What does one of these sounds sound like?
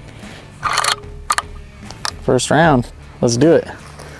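A rifle's parts click as hands handle it.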